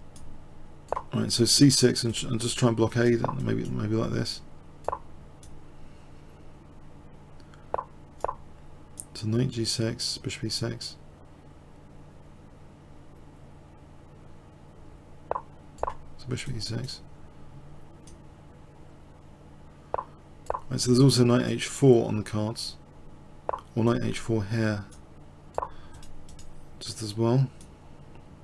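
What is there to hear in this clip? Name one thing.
A man talks in short bursts into a close microphone.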